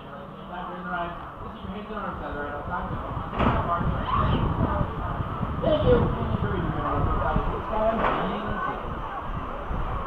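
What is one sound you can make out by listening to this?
Young riders shout and scream excitedly nearby.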